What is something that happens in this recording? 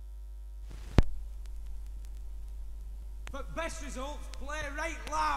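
Surface crackle pops from a spinning vinyl record.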